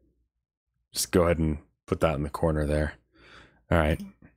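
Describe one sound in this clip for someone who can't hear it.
A young man speaks close to a microphone with animation.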